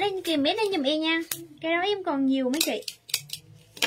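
A young woman talks animatedly close by.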